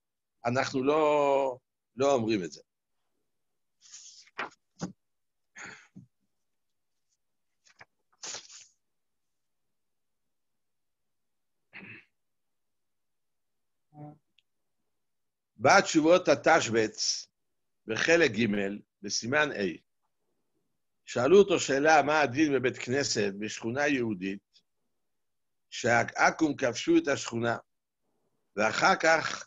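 An elderly man speaks calmly over an online call, with long pauses.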